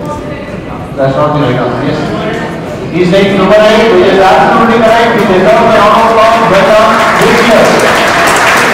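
A young man speaks to a room full of people.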